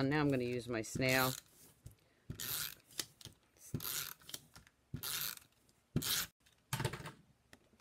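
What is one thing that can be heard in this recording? Paper rustles and slides against a hard surface.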